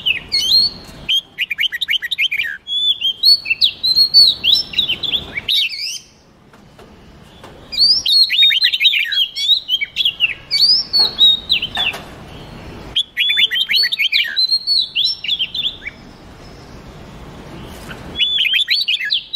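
Songbirds sing in quick, bright bursts of chirps and whistles, pausing now and then.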